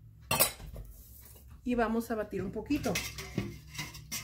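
A whisk clinks against a metal bowl.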